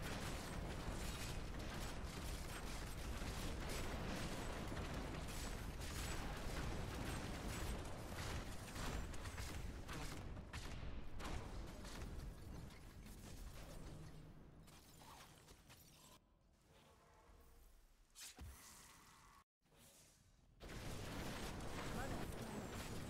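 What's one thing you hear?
Spell blasts burst and crash repeatedly.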